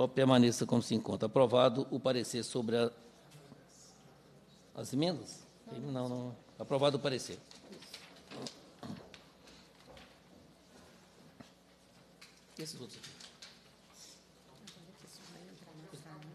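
Paper rustles as papers are handled.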